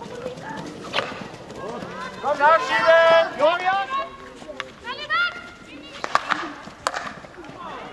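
A hockey stick smacks a ball.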